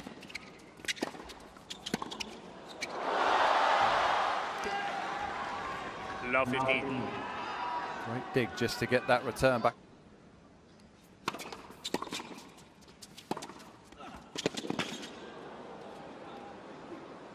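A tennis ball is struck sharply back and forth.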